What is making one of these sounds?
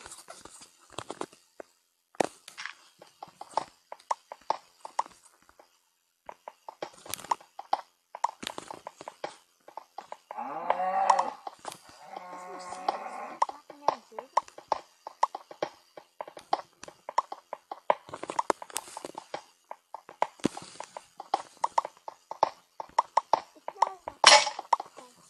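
A pickaxe taps and chips at stone in quick, repeated knocks.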